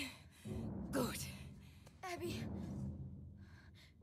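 A boy cries out in fear.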